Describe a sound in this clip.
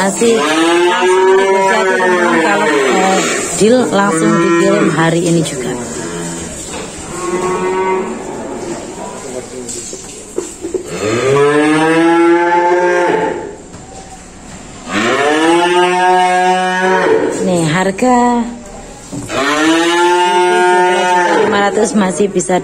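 A cow moos loudly and repeatedly, in long drawn-out calls.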